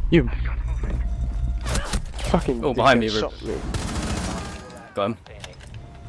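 A rifle fires sharp shots in quick bursts.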